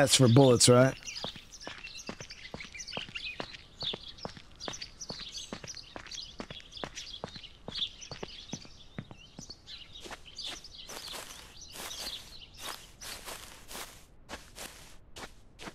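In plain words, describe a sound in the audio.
Quick footsteps run along a hard road.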